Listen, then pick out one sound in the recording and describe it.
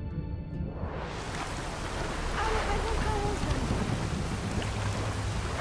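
Water splashes.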